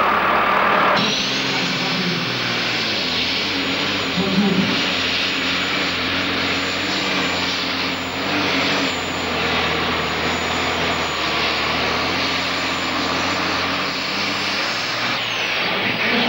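A pulling tractor's engine roars loudly at full power.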